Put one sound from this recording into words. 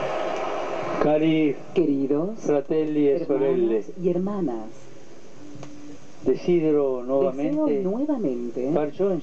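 An elderly man speaks calmly through a microphone over loudspeakers.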